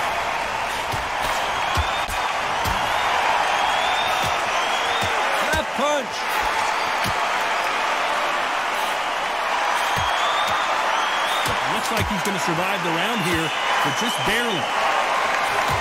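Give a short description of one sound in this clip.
A large crowd roars and cheers steadily in a big arena.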